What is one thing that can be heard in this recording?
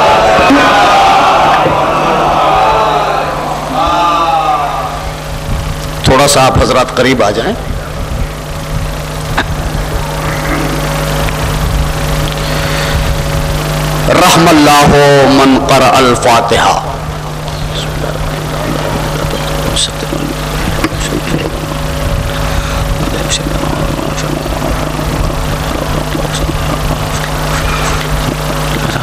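A man speaks into a microphone over a loudspeaker, in a room that echoes.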